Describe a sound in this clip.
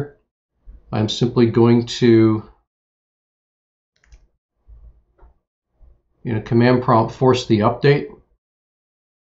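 A man speaks calmly and clearly into a close microphone, in short bursts.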